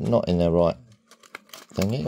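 A blister pack of tablets crinkles in a hand.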